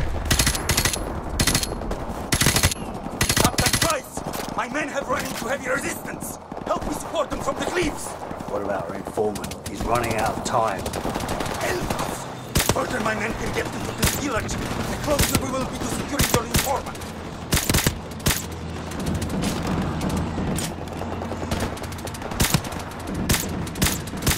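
Rifle shots ring out in sharp, loud bursts.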